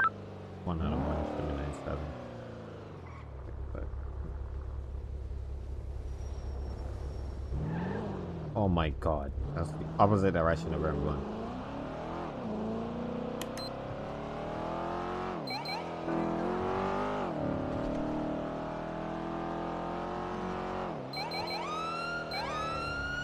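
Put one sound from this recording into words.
A car engine revs up and down as it races through gear changes.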